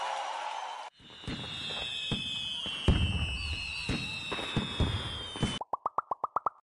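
Fireworks whistle and pop.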